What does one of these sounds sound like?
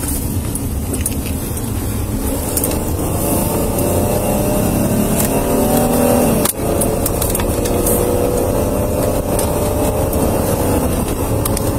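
Road noise rumbles steadily from inside the car.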